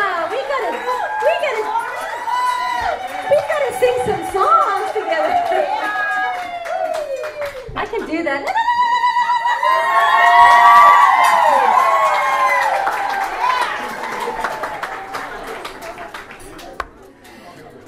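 A woman sings into a microphone with a wavering voice.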